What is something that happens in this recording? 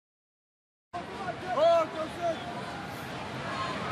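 A man shouts loudly across a stadium.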